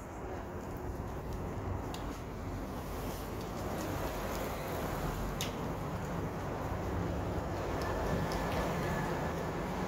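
City traffic rumbles steadily along a street outdoors.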